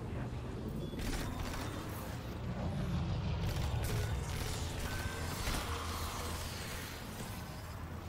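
An energy gun fires rapid bursts of shots.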